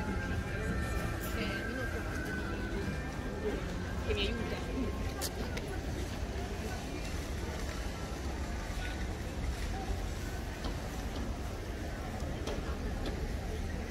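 Voices of people chatter nearby in the open air.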